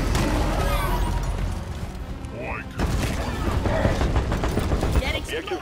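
Rocks crumble and clatter as they break.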